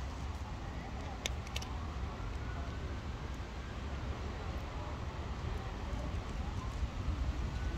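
A cat crunches dry food close by.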